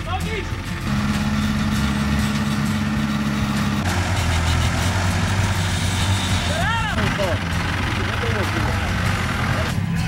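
A four-wheel-drive engine idles and roars as it labours through mud.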